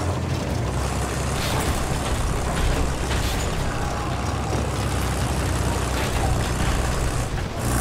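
Tank tracks clank and grind over stone.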